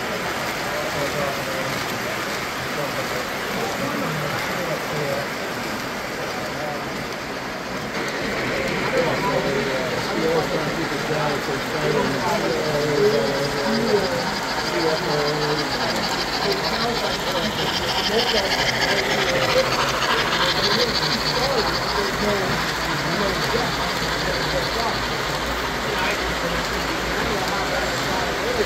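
Men talk casually nearby in a room.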